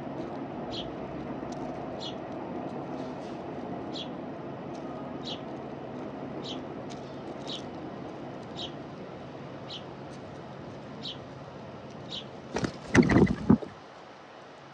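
Doves peck at scattered seeds on hard ground.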